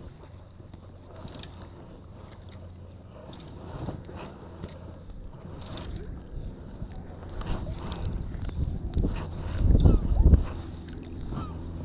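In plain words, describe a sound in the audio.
A fishing reel clicks as line is pulled off.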